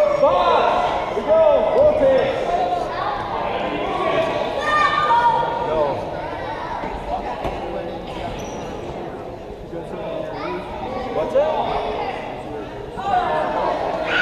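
A crowd murmurs and chatters in the stands.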